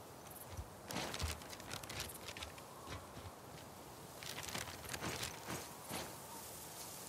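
A paper map rustles and crinkles in someone's hands.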